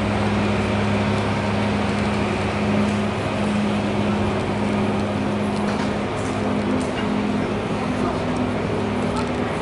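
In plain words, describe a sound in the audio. Street traffic hums steadily outdoors.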